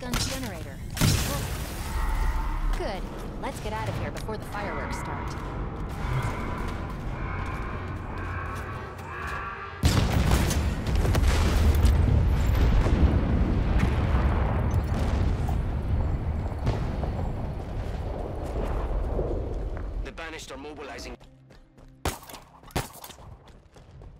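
Gunfire cracks in quick bursts.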